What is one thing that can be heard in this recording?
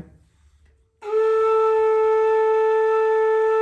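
A bamboo flute plays a steady, clear note.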